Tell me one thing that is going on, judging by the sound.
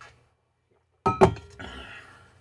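A mug knocks down onto a desk.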